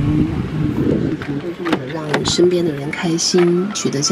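A car door unlatches with a click and swings open.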